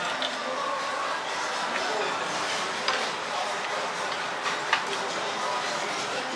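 Chopsticks clink against a dish.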